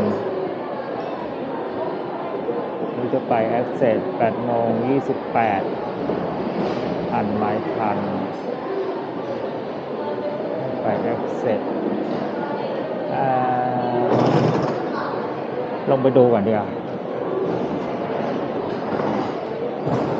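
A large echoing hall hums with distant murmur.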